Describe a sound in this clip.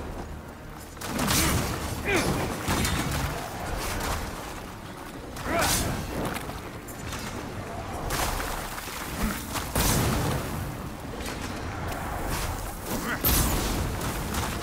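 Fire bursts and crackles in loud blasts.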